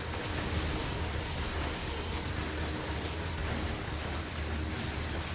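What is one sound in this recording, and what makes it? Electric blasts crackle and zap in quick bursts.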